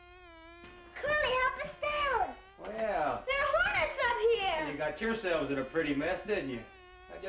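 A young boy shouts up loudly to another boy.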